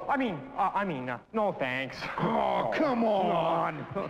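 Another man answers in a raised voice.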